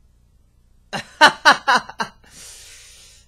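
A young man laughs loudly close to a microphone.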